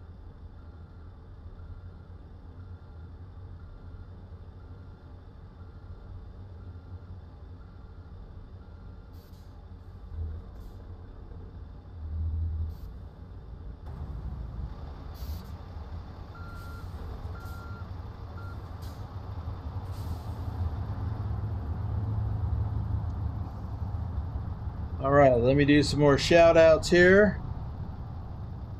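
A truck engine rumbles steadily at low pitch.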